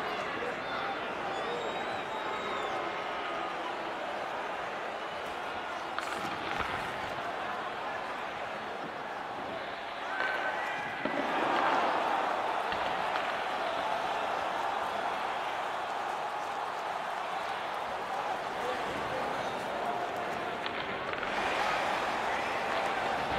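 A large arena crowd murmurs and cheers steadily.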